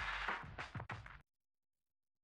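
Loud rock music plays and then cuts off abruptly.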